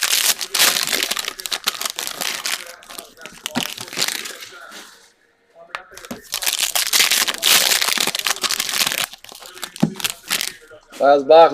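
Plastic wrapping crinkles and rustles loudly up close.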